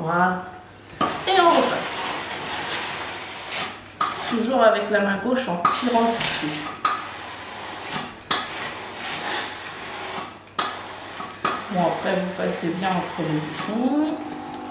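A steam iron hisses as it glides over fabric.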